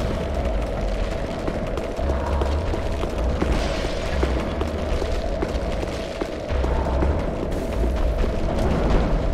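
Armour clanks with heavy footsteps on stone.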